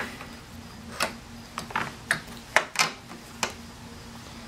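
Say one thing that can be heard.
Plastic engine parts click and knock under a hand.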